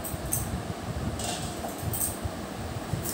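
A metal bowl clinks against the floor.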